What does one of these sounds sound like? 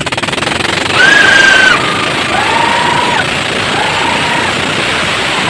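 A young woman whoops excitedly close by.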